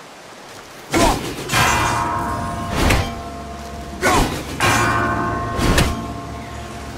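An axe strikes hard with a metallic ring.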